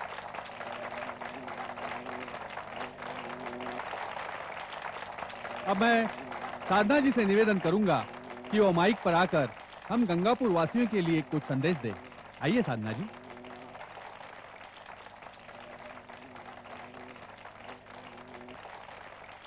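A crowd applauds steadily outdoors.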